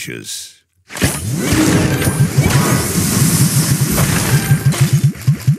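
A big magical blast whooshes and sparkles.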